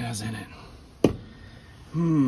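A sharp knock of wood striking wood rings out once.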